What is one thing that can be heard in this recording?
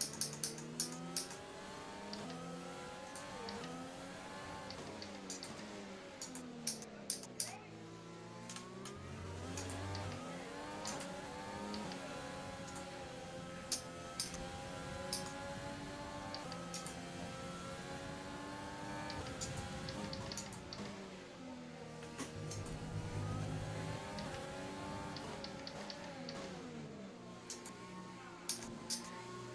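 A racing car engine screams, rising and falling in pitch through the gear changes.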